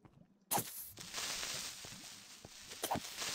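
A creature hisses with a steady fizz.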